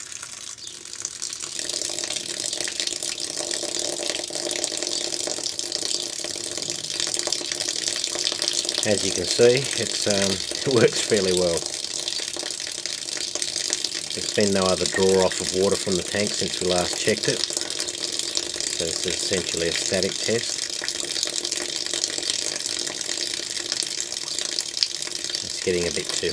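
Water pours steadily from a pipe and splashes.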